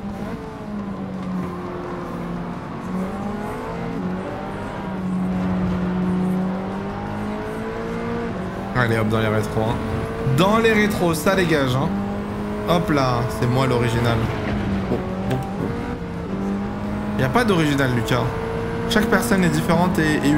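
A racing car engine drones and rises in pitch as it shifts up through the gears.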